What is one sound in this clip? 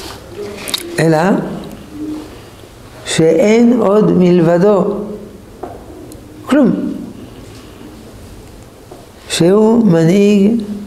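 An elderly man speaks expressively and close by, in a sing-song, chanting voice.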